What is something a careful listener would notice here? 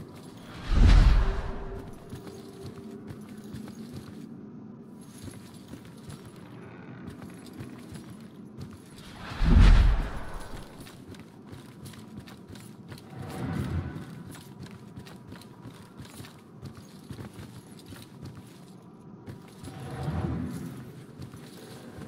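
A deep ghostly whoosh rushes past now and then.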